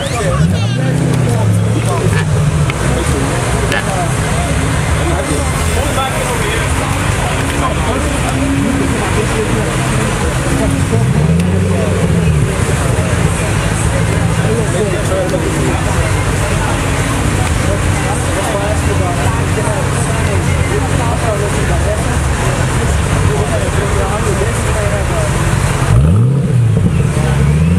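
A sports car engine idles loudly with a deep rumble and revs up and down.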